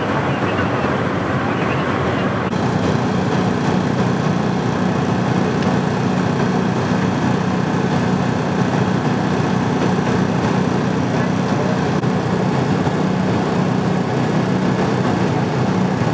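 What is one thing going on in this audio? A vehicle engine idles steadily nearby.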